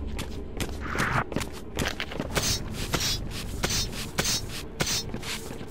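Swords clash and scrape in a fight.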